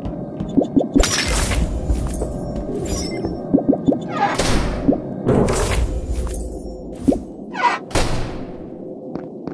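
Short electronic game sound effects burst out now and then.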